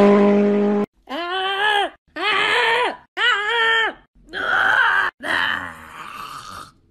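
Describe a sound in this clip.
A cat yowls loudly several times.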